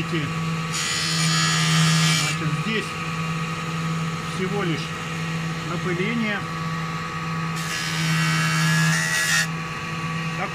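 A small circular saw motor hums steadily.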